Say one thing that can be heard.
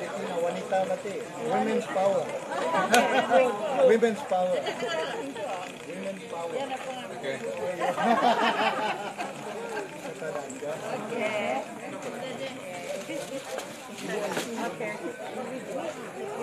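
A crowd of women and men chatter and laugh loudly nearby, outdoors.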